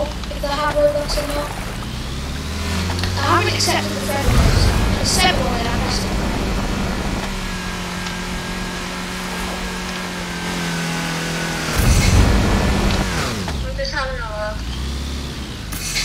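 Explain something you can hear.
A young boy talks with animation close to a headset microphone.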